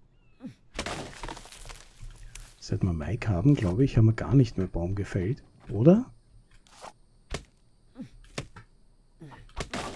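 An axe chops into wood with sharp knocks.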